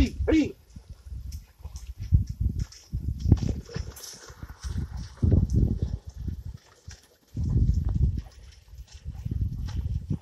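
Hooves squelch and splash in wet soil.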